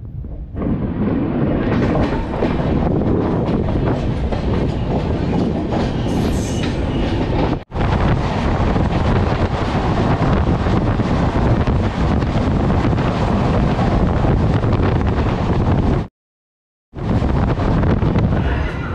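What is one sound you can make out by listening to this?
A train rumbles and clatters steadily along the rails, heard up close.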